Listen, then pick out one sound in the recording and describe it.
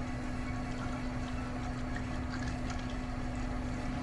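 Liquid glugs as it is poured from a plastic jug.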